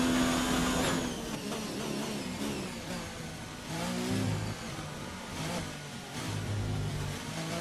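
A racing car engine drops to a low, uneven burble as the car brakes for a slow corner.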